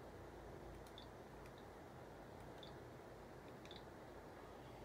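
Fingers tap lightly on a touchscreen.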